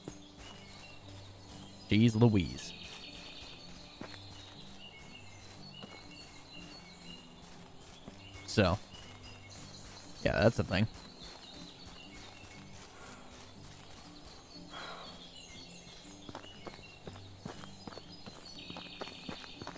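Footsteps crunch on a dirt path outdoors.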